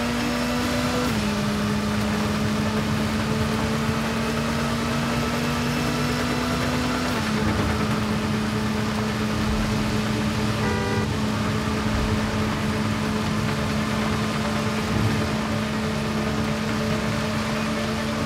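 A motorcycle engine roars steadily, shifting gears as it speeds along.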